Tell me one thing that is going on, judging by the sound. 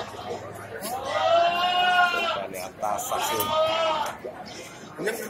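A goat bleats loudly.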